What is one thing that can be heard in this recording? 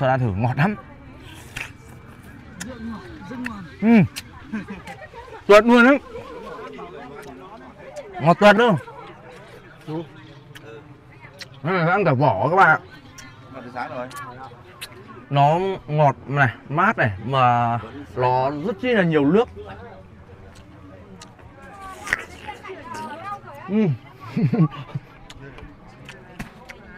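A young man chews noisily.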